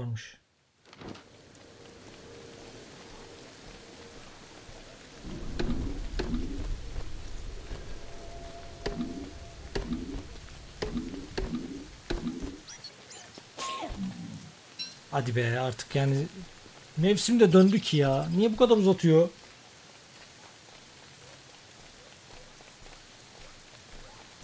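Light rain patters steadily.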